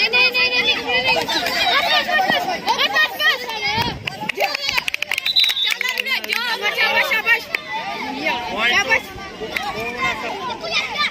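A crowd of children shouts and cheers excitedly outdoors.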